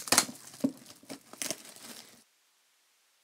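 Plastic wrap crinkles as hands handle it.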